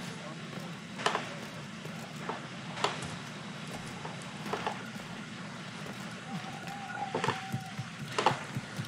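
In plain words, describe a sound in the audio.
Hands and boots knock and scrape on a stone wall as someone climbs.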